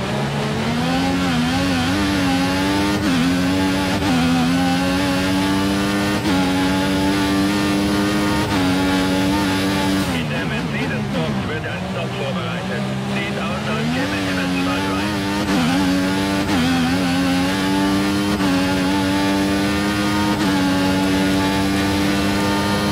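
A racing car's gears shift with quick breaks in the engine's whine.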